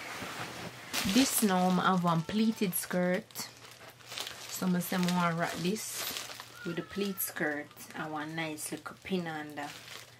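A plastic bag crinkles in a young woman's hands.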